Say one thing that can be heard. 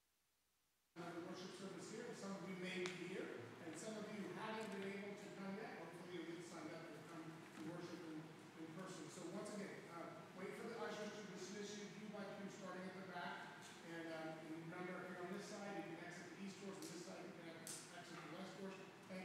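An elderly man speaks steadily through a microphone in an echoing hall.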